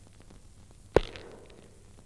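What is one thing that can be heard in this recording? A flashlight switch clicks.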